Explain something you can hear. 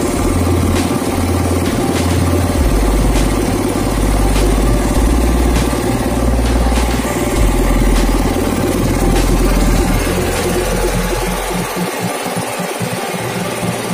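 An air compressor runs with a loud, steady rattling hum.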